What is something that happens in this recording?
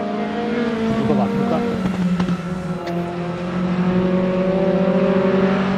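A racing car engine drones steadily, its pitch shifting slightly as it changes speed.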